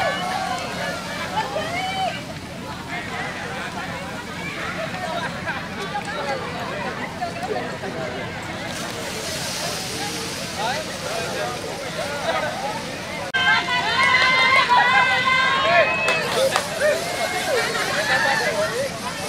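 Several men and women talk at once outdoors, close by.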